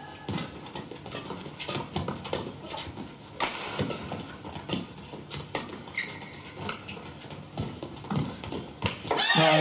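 A shuttlecock is hit back and forth with sharp racket smacks.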